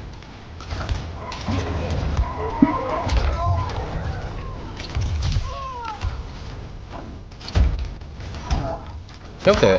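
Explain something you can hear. Fighters land heavy punches and kicks with sharp thuds and cracks.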